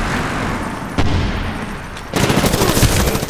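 A rifle fires loud, echoing shots.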